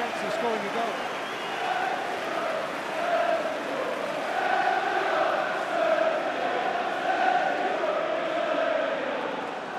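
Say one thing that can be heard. A large crowd sings and chants loudly in an open stadium.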